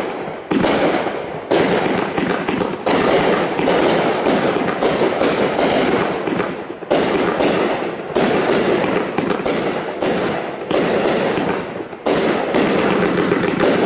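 Firework stars crackle and fizz.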